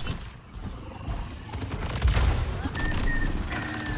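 Energy blasts fire in quick bursts.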